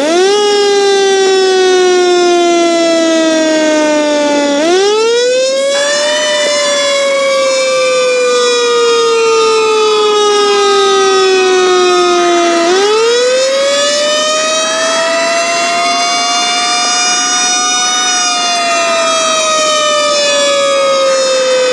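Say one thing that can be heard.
A fire truck siren wails, slowly rising and falling.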